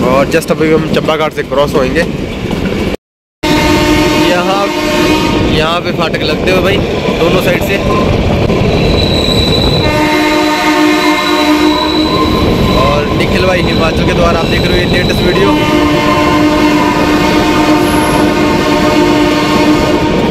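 A train rumbles and clatters along the tracks.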